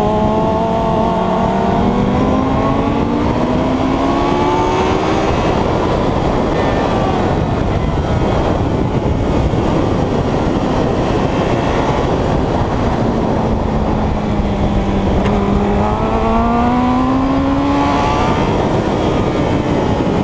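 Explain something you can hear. Wind roars loudly past the rider.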